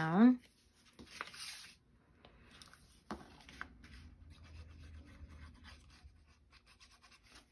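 Paper rustles and crinkles as it is folded and handled.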